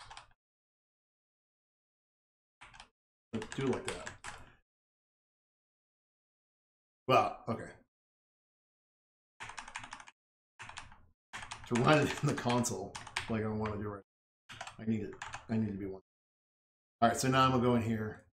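An elderly man talks calmly into a close microphone, with pauses.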